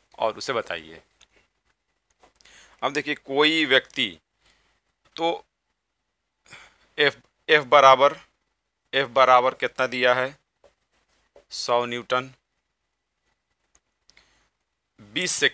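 A man speaks calmly, explaining, close to the microphone.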